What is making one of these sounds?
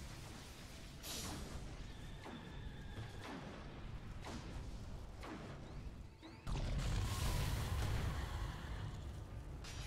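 Game spells and blows crash and whoosh during a battle.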